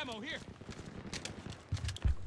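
A rifle magazine clicks into place during a reload.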